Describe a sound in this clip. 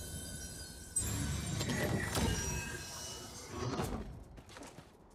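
A staff swishes through the air with a whoosh.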